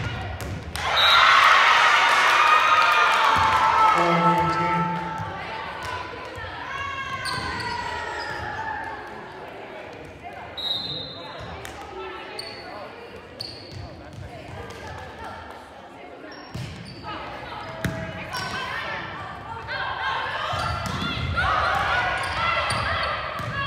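Young women shout and cheer in an echoing gym.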